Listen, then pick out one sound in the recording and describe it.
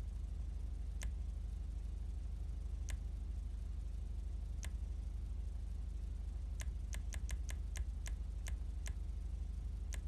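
Short menu clicks tick as selections change.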